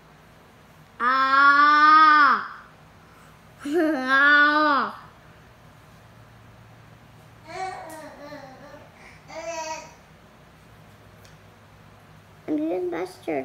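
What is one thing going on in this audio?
A baby squeals and babbles loudly nearby.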